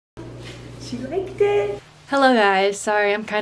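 A young woman talks excitedly and laughs close to the microphone.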